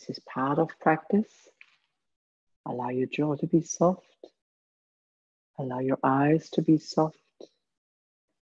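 A middle-aged woman speaks calmly and clearly into a close microphone, heard as over an online call.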